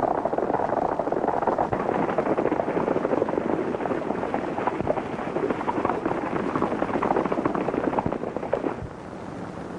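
Horses gallop along a trail.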